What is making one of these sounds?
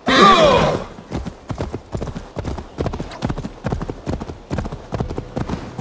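A horse's hooves thud steadily on grassy ground.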